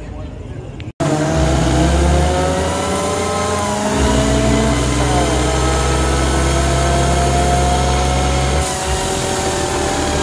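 A truck engine roars loudly up close.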